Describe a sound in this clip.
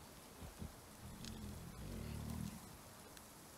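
A man speaks briefly and quietly into a microphone.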